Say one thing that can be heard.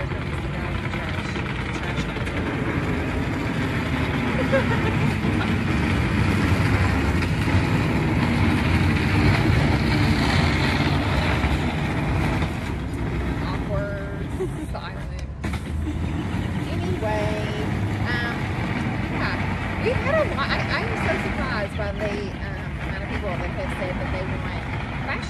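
Another young woman talks with animation close by.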